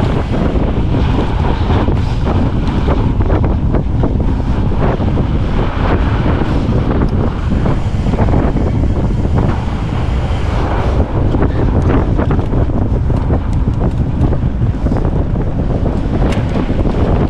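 Fat bicycle tyres crunch and hum over packed snow.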